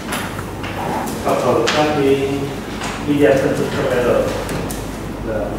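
A man speaks calmly, as if lecturing.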